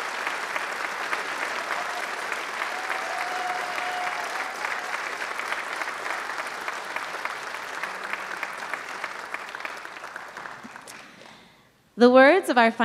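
An audience applauds in a large hall and then fades out.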